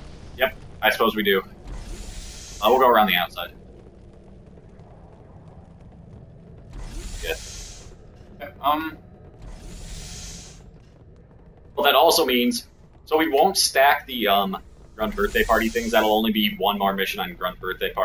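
Young men talk and exclaim excitedly close to a microphone.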